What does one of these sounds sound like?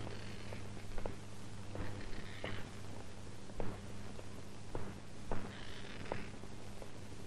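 Footsteps tap on a hard pavement.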